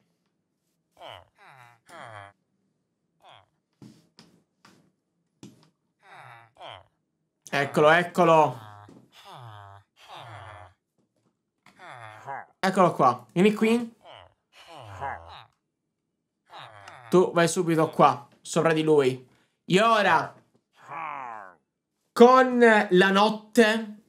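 A young man talks with animation into a close microphone, in bursts between pauses.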